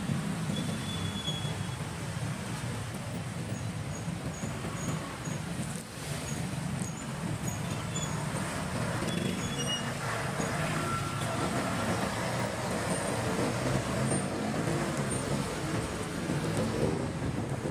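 Traffic rumbles all around on a busy street.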